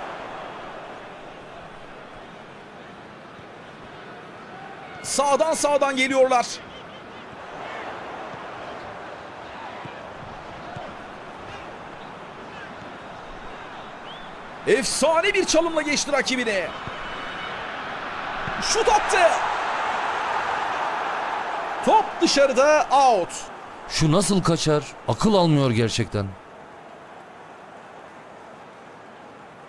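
A large crowd roars steadily in a stadium, swelling as play nears the goal.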